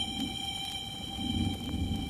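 A hand drum thumps with deep, booming beats.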